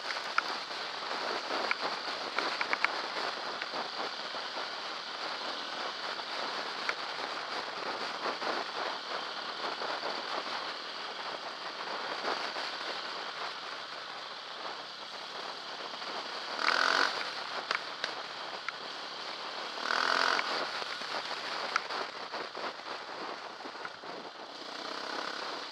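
A motorcycle engine drones steadily up close.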